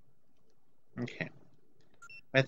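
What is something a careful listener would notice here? A short electronic menu chime sounds.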